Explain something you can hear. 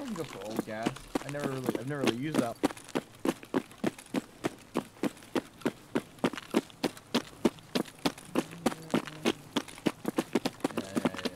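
Running footsteps thud quickly and steadily on a paved road.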